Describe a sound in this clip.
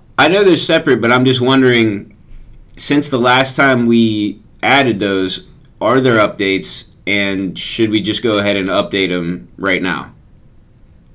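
A young man speaks calmly and closely into a microphone.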